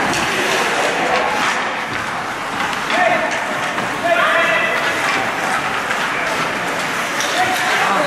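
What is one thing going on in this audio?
A crowd of spectators talks and calls out in an echoing indoor rink.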